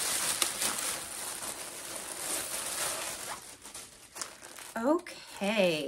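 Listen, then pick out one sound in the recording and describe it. Paper rustles as it is pulled out and handled.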